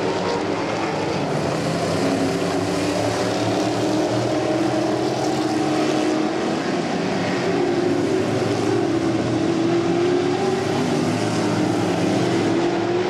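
Race car engines roar loudly, rising and falling in pitch as the cars speed past.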